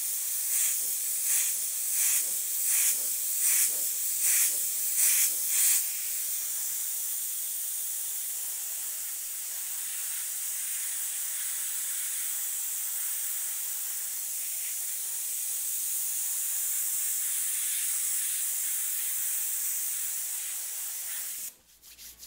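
An airbrush hisses, first in short bursts and then in a long steady stream.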